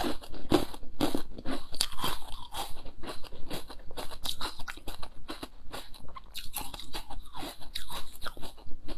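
A young woman crunches and chews crisp food close to a microphone.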